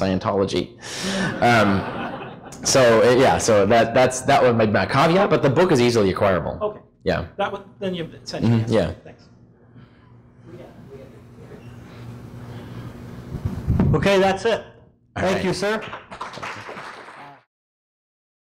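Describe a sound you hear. A man speaks through a microphone in a large echoing room.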